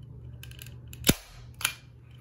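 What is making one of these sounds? A staple gun snaps with a sharp metallic clack.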